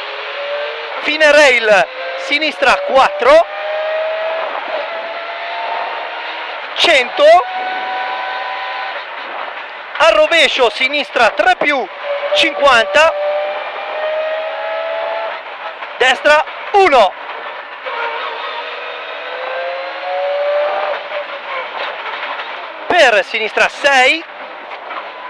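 A man reads out pace notes rapidly over an intercom.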